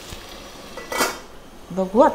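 A metal lid clanks onto a pan.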